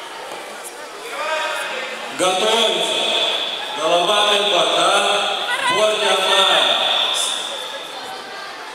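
A man speaks loudly, with animation, in a large echoing hall.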